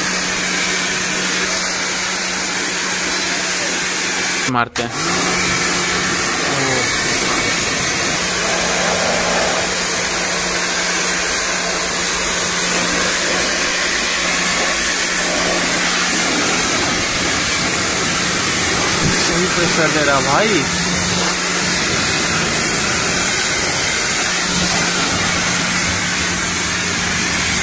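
A pressure washer sprays a jet of water with a steady hiss and hum.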